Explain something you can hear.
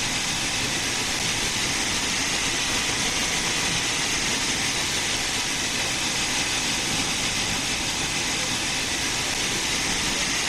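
A steam locomotive chuffs steadily as it rolls along the rails.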